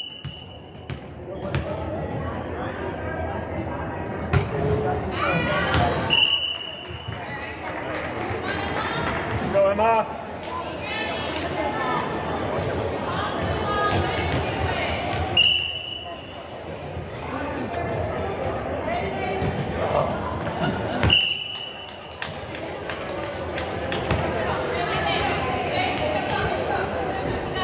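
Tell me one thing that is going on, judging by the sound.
Volleyballs thump on hands and bounce on a wooden floor in a large echoing hall.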